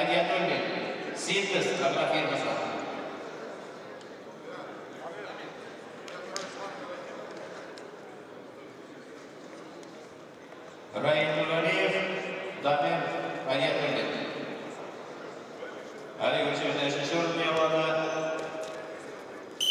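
A man speaks loudly, echoing through a large hall.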